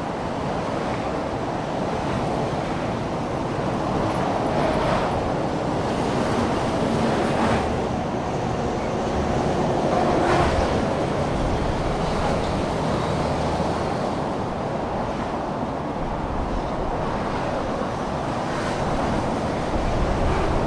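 Tyres roll steadily on a road.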